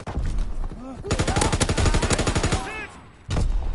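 A machine gun fires a long, rapid burst up close.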